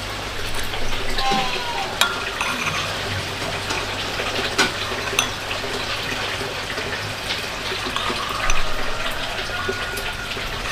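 A spoon scoops and drips liquid in a bowl.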